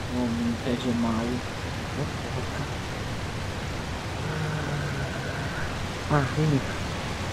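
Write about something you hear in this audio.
A propeller engine drones steadily.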